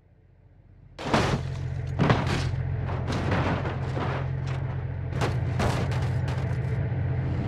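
A car lands hard in grass with heavy thuds.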